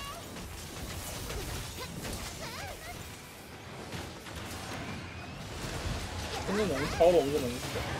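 Sword blows strike a beast with sharp, clashing hits.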